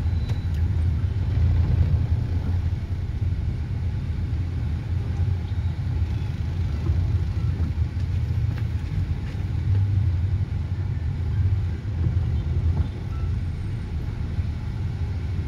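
A car engine hums low and steady from inside the cab.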